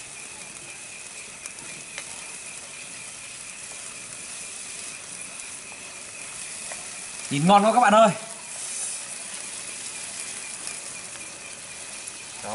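Liquid pours and splashes into a hot pan.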